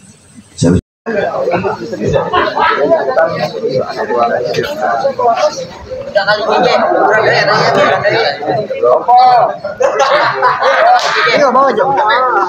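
A crowd of men and boys talk and chatter all around, outdoors.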